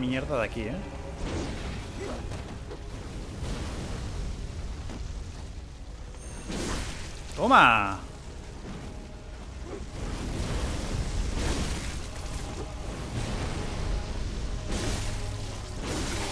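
Flames whoosh from a burning blade.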